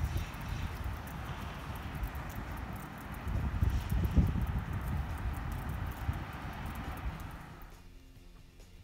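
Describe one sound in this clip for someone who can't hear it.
Wind gusts through pine trees outdoors.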